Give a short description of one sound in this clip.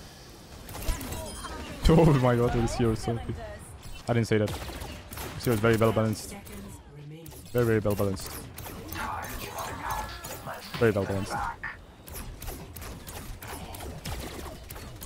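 An energy weapon fires rapid sci-fi shots.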